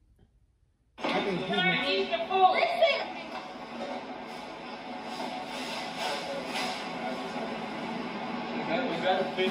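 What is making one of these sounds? A television plays a show through its speakers.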